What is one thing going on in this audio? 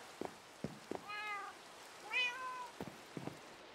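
A cat meows twice.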